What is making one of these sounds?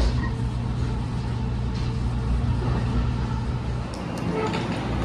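A train rumbles along the tracks, heard from inside a carriage.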